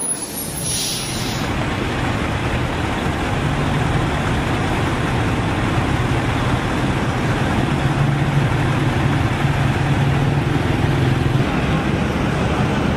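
Heavy truck engines rumble steadily as a convoy rolls by.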